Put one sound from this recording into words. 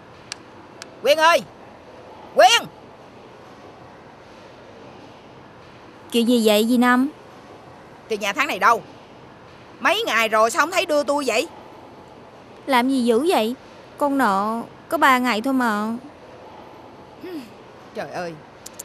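A middle-aged woman speaks firmly up close.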